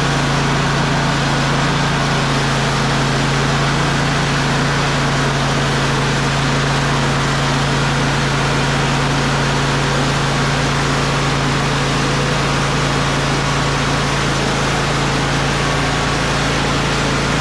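A sawmill engine roars steadily close by.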